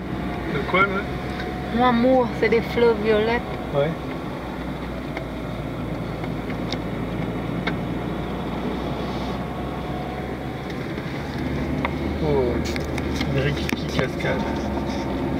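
Tyres roll steadily on a paved road.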